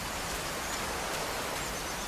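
A waterfall splashes steadily.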